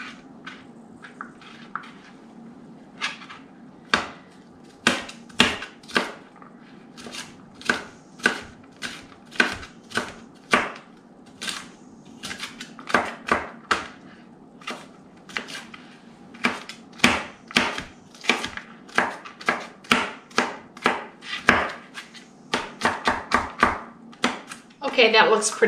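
A kitchen knife chops green bell pepper on a plastic cutting board.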